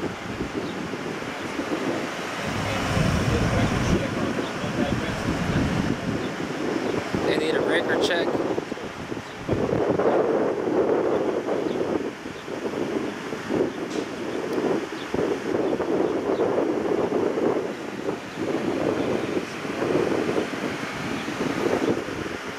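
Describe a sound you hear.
Men talk calmly at a distance outdoors.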